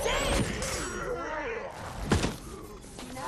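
A heavy thud sounds as two figures grapple.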